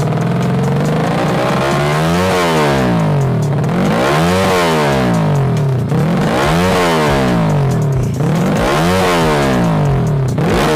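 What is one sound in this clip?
A dirt bike engine revs up hard and drops back, over and over, close by.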